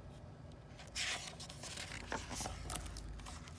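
A page of a book rustles as it is turned.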